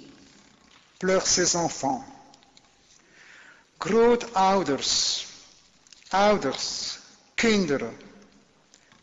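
A man speaks calmly into a microphone, reading out in short phrases with pauses.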